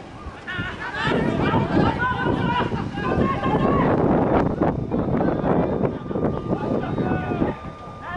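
Young men cheer and shout excitedly after the hit.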